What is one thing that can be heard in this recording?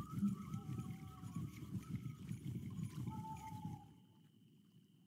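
A fishing reel whirs as line is wound in.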